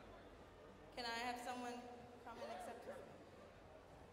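A young woman speaks briefly into a microphone, heard through a loudspeaker.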